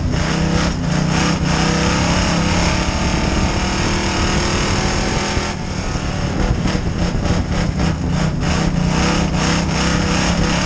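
The car's body rattles and bangs over the rough dirt.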